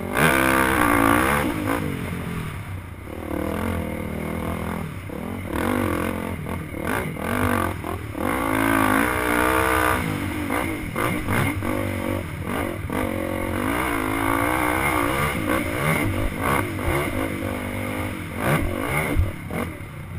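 A dirt bike engine revs hard and rises and falls in pitch up close.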